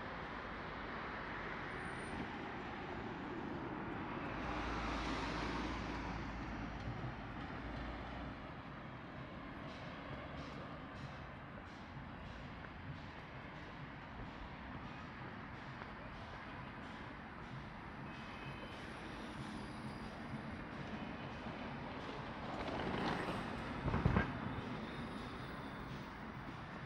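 Traffic hums steadily along a nearby city road.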